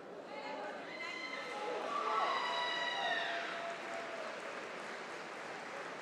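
A woman referee calls out commands loudly.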